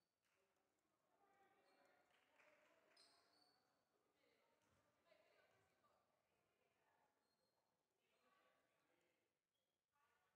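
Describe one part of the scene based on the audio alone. Young women talk quietly at a distance in an echoing hall.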